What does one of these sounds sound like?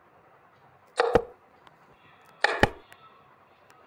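A wooden click sounds as a chess piece is moved.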